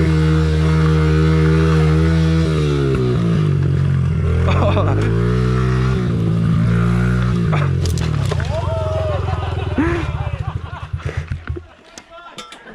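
A dirt bike engine revs up and down close by, then sputters and stops.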